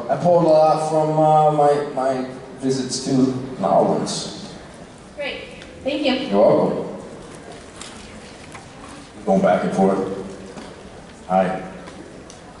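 A man talks with animation into a microphone, heard through loudspeakers in a large echoing hall.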